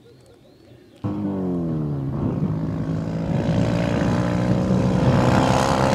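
A small off-road buggy's engine roars loudly and revs up through its gears as it races closer.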